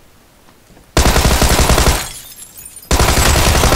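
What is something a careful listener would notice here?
A submachine gun fires rapid, loud bursts close by.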